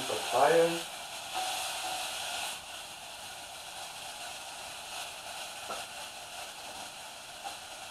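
A wooden spoon scrapes and stirs inside a pot.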